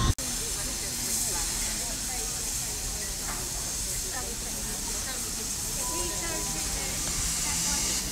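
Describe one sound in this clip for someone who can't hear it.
A steam locomotive hisses steadily at rest.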